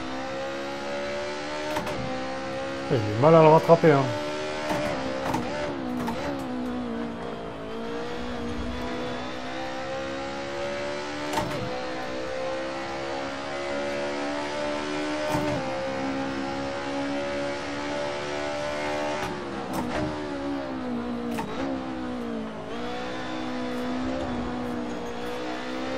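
A racing car engine drones and revs steadily, rising and dropping in pitch with gear changes.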